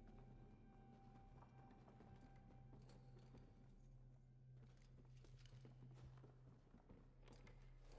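Footsteps patter steadily on a wooden floor.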